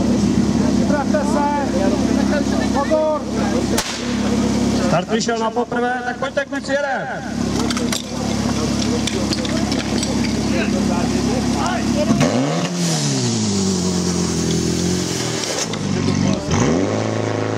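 A portable pump engine roars steadily, then revs up and down.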